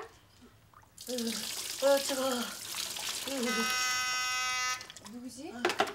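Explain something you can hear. Water splashes as it is poured over a boy's back.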